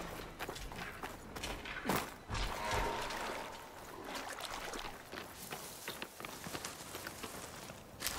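Footsteps crunch on gravel and rustle through grass.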